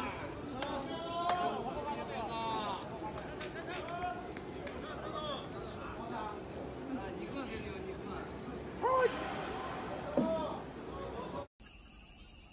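Young men shout and chatter from a distance.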